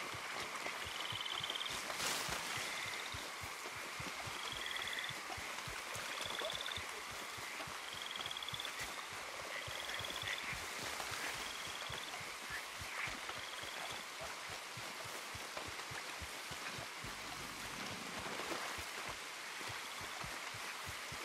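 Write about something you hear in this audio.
Quick footsteps run over grass and soft ground.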